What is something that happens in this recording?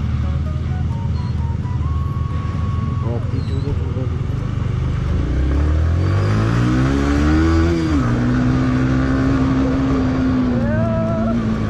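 Tyres crunch over a rough dirt road.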